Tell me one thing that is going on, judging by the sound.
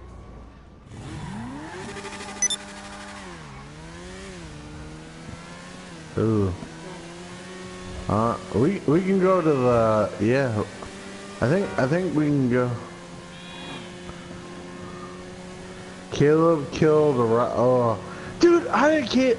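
A sport motorcycle engine hums as it cruises, its pitch rising and falling with the throttle.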